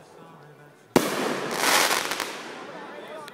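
Firework sparks crackle and fizz.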